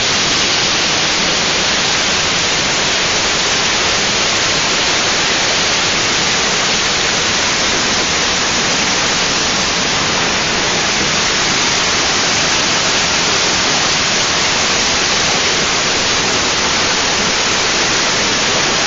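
A waterfall roars and splashes close by.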